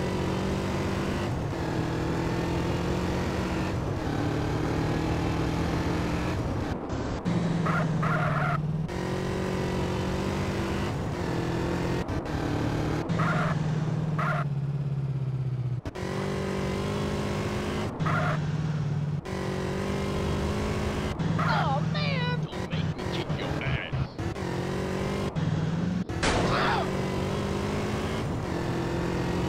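A motorcycle engine drones steadily, rising and dropping in pitch as it speeds up and shifts gears.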